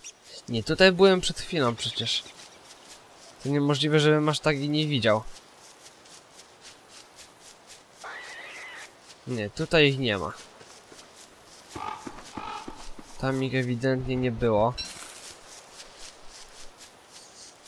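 Footsteps patter on dry ground.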